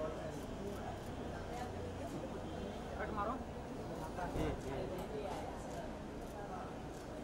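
A man and women talk with each other nearby amid a murmuring crowd.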